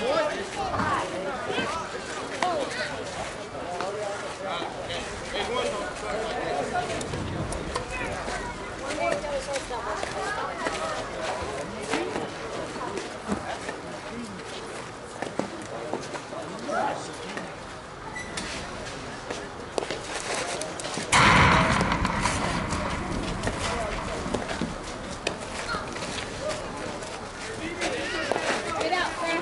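Men and women call out and chat at a distance outdoors.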